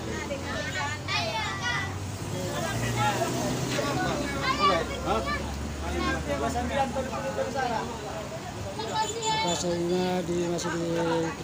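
A crowd of women and men chatter close by, outdoors.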